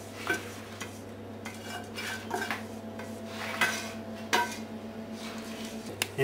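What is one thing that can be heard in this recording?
A spoon scrapes food out of a metal pan.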